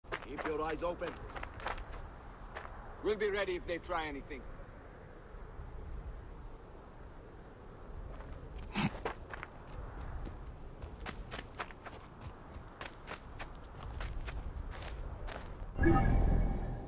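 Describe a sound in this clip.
Footsteps crunch quickly over gravel and dry ground.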